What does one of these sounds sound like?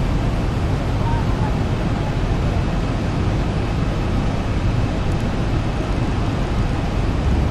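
Jet engines roar steadily with a low rumble of rushing air.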